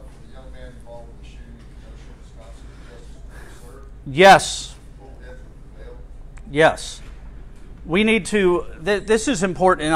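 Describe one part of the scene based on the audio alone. An elderly man speaks calmly through a microphone, in pauses.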